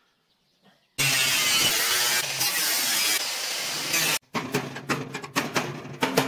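An angle grinder screeches as it grinds metal.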